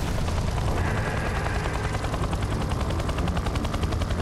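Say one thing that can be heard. A helicopter's rotor thumps rapidly and steadily, close by.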